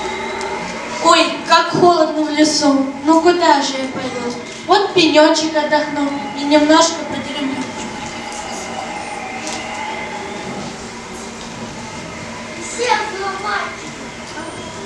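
A young girl speaks with feeling in a large echoing hall.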